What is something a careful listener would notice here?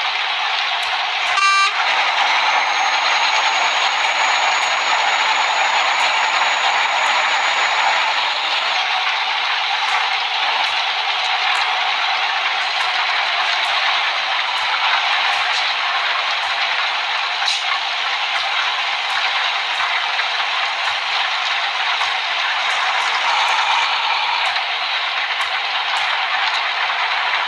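Rain patters steadily on a windshield.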